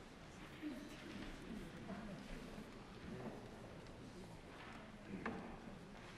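Footsteps cross a stone floor in an echoing hall.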